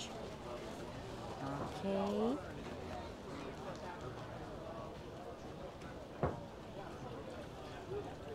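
Men and women chatter in the background outdoors.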